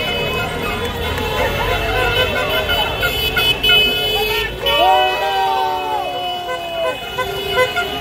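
A scooter engine hums as it passes close by.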